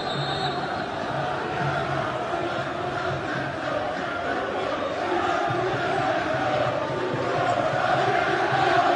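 A stadium crowd roars steadily, growing louder toward the end.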